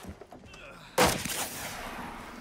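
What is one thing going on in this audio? A flare pistol fires with a sharp bang.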